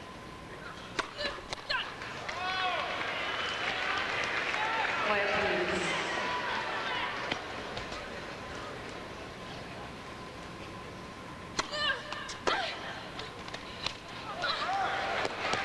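A tennis ball is struck back and forth with sharp racket pops.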